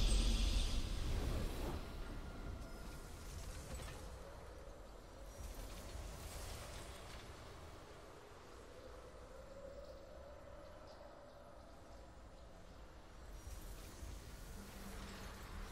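Triumphant game music swells and slowly fades.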